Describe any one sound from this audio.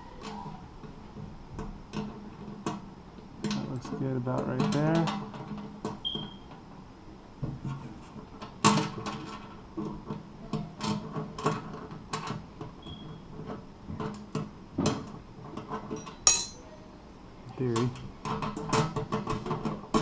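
Metal brackets click and rattle against a perforated panel.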